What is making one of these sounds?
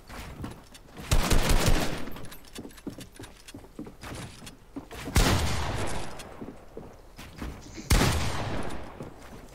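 Loud game sound effects burst out in short rushes.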